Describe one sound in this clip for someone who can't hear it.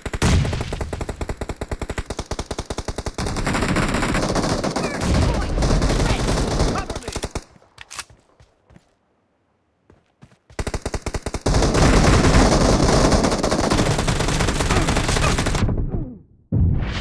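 Rapid bursts of automatic gunfire rattle loudly.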